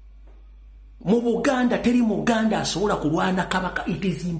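A man speaks loudly and with animation, close to the microphone.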